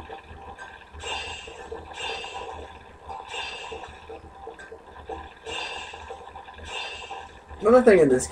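Short bright chimes ring out again and again from a television speaker.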